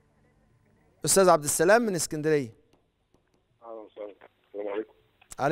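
A middle-aged man speaks calmly into a microphone.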